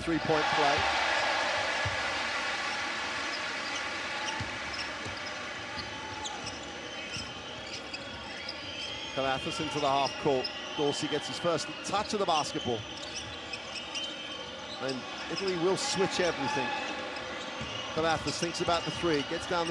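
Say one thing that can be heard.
A large crowd cheers loudly in an echoing arena, then settles to a steady murmur.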